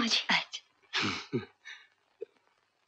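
A woman speaks and laughs.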